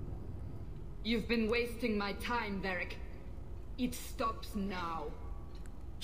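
A woman speaks coldly and with contempt, close by.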